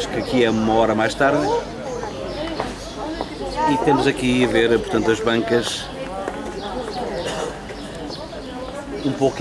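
People chatter in the background outdoors.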